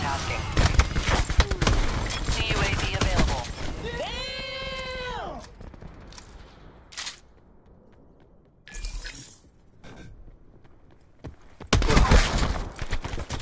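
A video-game automatic gun fires in rapid bursts.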